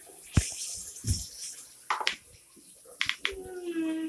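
Billiard balls clack together and roll into a pocket.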